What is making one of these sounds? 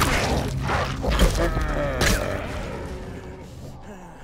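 A wild animal snarls and growls.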